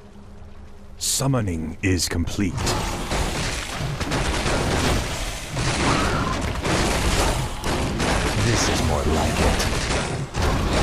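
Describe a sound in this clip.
Magic spells whoosh and crackle in a battle.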